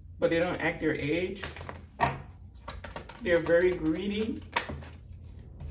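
Playing cards shuffle with soft flicks and taps.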